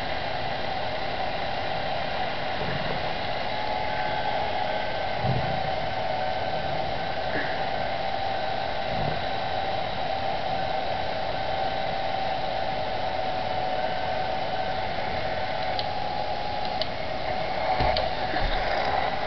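A machine engine hums steadily.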